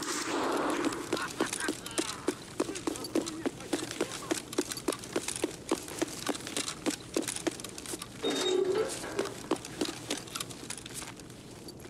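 Footsteps crunch steadily over gravelly debris.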